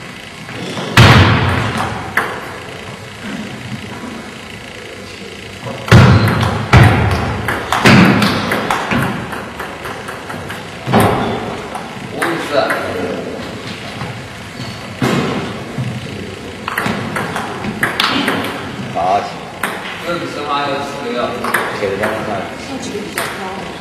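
A table tennis ball clicks back and forth between paddles and a table in a large echoing hall.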